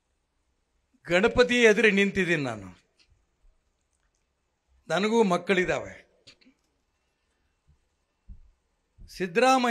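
An elderly man gives a loud, forceful speech through a microphone and loudspeakers, with pauses between phrases.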